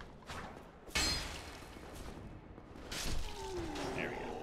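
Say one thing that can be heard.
A sword strikes an armoured enemy with a heavy hit.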